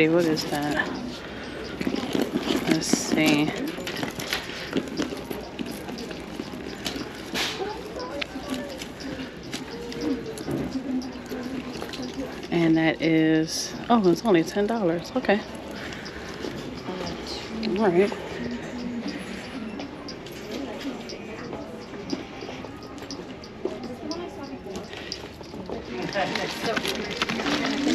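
Leather handbags rustle and creak as a hand handles them.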